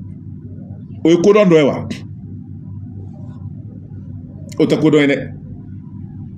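A man speaks into a microphone in short bursts.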